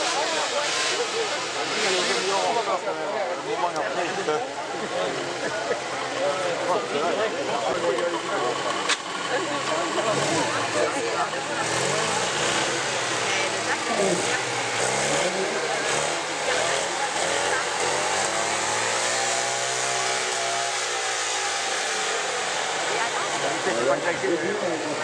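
Adult spectators chatter close by outdoors.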